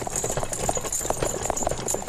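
Wagon wheels rumble and creak over a dirt track.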